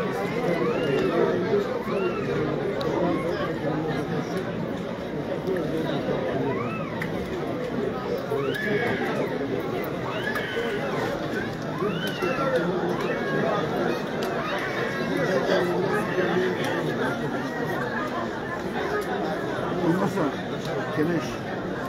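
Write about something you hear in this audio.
A large outdoor crowd chatters and calls out throughout.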